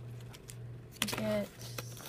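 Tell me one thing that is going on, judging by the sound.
Plastic packaging crinkles briefly under a hand.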